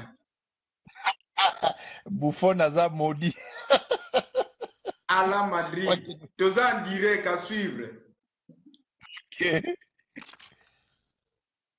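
A middle-aged man laughs loudly over an online call.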